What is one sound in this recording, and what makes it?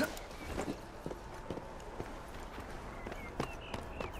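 Footsteps run across a slate roof.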